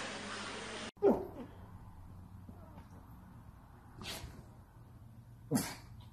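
A small dog whines briefly close by.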